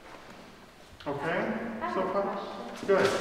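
A man speaks calmly in a large echoing room.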